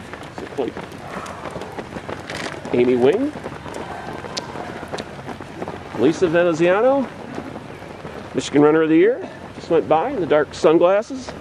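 Runners' footsteps patter on pavement.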